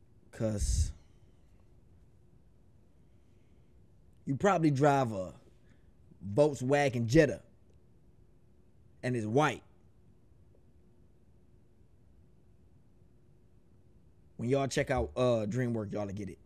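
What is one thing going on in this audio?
A young man speaks with animation, close to a microphone, in short bursts with pauses.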